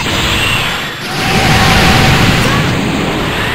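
An energy beam roars loudly.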